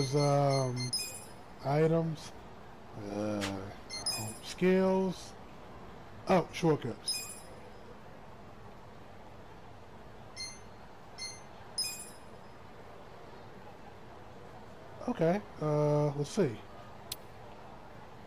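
Short electronic menu chimes and blips sound now and then.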